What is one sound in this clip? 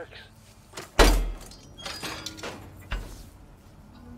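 A metal bar clanks loudly against a door brace.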